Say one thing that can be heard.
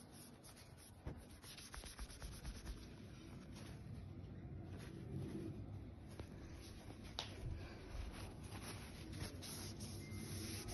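A tablet is handled close by, with soft rustling and light knocks.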